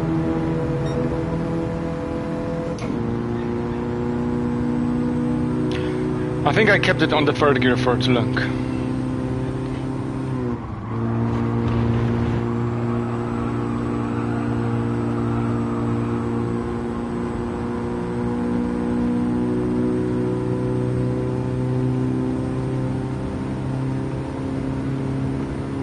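A car engine drones steadily at high revs, dropping briefly at gear changes.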